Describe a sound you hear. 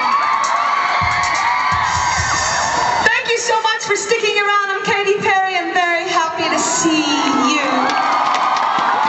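A young woman talks with animation through a microphone over loudspeakers.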